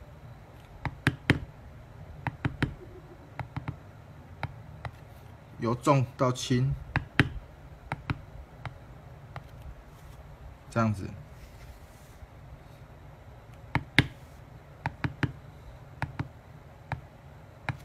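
A mallet taps sharply on a metal stamping tool, in short bursts of knocks.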